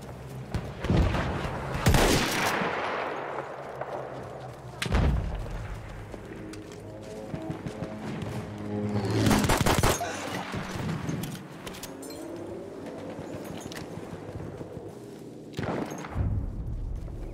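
Gunshots crack loudly and echo among rocks.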